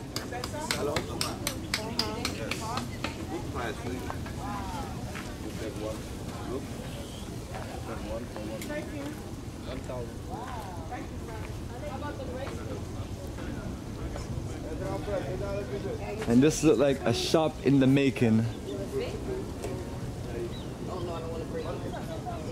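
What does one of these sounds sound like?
Men and women chatter casually nearby outdoors.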